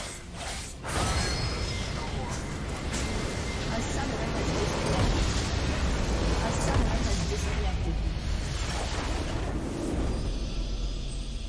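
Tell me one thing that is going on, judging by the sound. A large crystal structure explodes with a loud rumbling blast.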